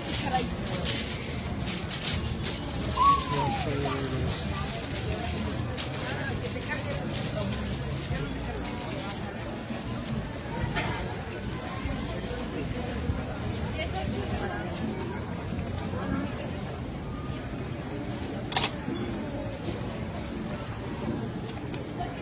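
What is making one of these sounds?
A busy street crowd murmurs and chatters around.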